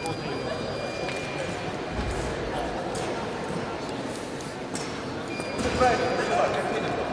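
Footsteps shuffle and squeak on a hard floor in a large echoing hall.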